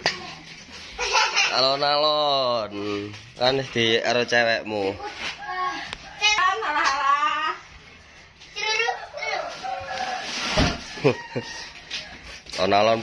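Young children talk and call out with animation nearby.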